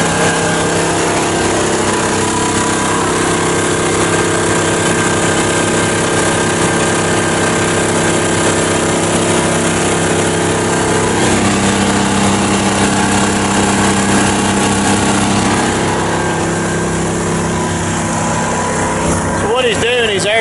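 A heavy diesel engine idles steadily nearby.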